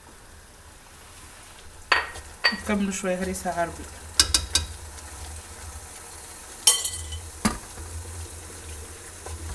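A wooden spoon stirs thick sauce in a metal pot.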